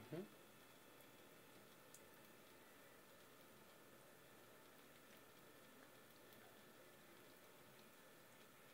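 A cat laps water softly from a cup.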